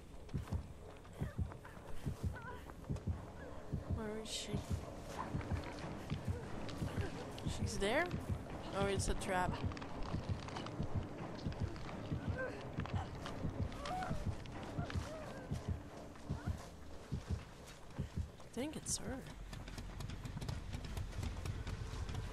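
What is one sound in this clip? Footsteps run quickly through rustling tall grass.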